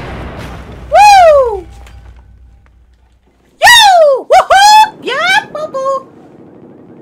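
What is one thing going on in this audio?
A teenage boy shouts and wails loudly in a high voice into a headset microphone.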